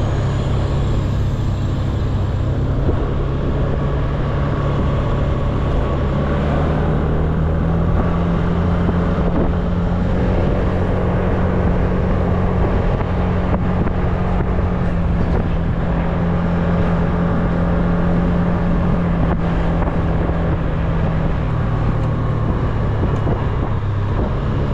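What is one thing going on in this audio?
Wind rushes past while riding.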